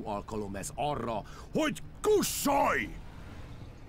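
A man speaks close by, in a tense voice.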